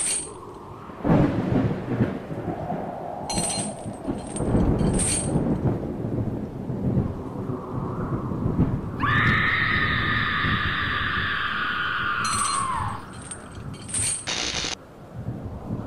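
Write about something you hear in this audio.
Thunder cracks and rumbles loudly.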